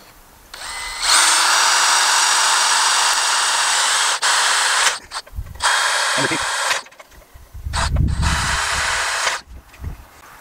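A cordless drill whirs loudly in bursts.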